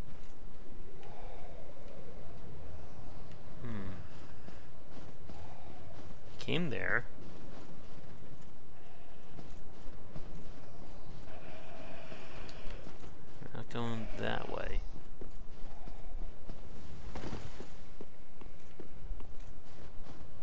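Armoured footsteps crunch through snow.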